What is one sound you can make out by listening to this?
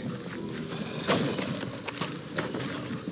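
Sword strikes and hits ring out in quick bursts.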